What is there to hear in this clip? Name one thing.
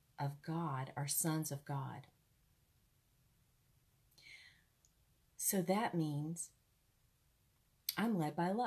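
A woman speaks calmly and close up, with pauses.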